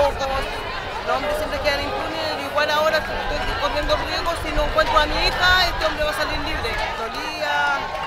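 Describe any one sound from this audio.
A crowd of young women chants loudly together outdoors.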